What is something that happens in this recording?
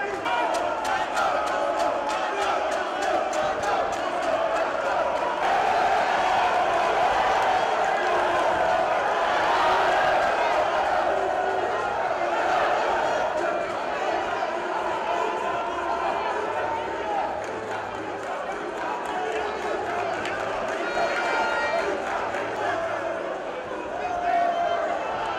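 A large indoor crowd cheers and shouts throughout, echoing in a big hall.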